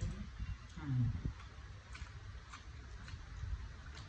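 Hands tear apart cooked crayfish shells with a crackle.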